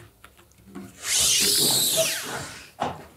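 A thin plastic panel bends and wobbles with a rushing rattle.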